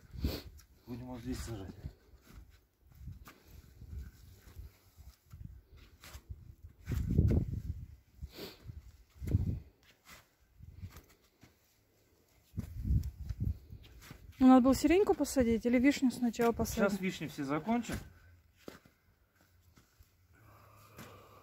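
A shovel scrapes and thuds into soil.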